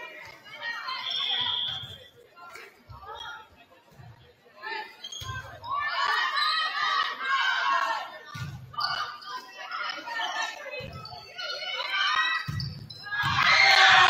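Young women shout and call out to each other across an echoing gym.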